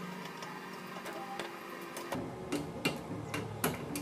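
A metal bending tool creaks as a lever is pulled.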